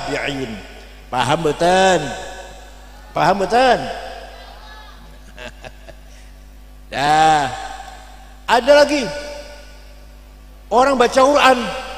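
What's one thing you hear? An elderly man chants in short, wavering phrases through a microphone.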